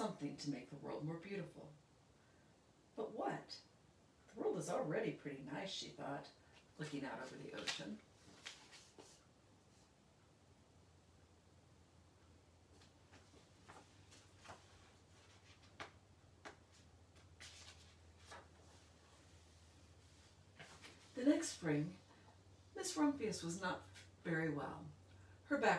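A woman reads aloud calmly and clearly, close by.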